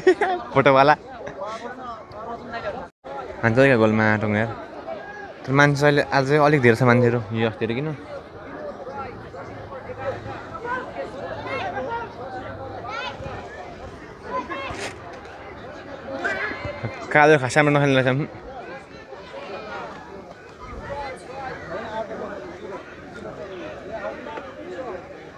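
A crowd of spectators chatters and calls out in the background.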